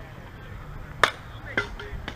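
A bat cracks against a softball.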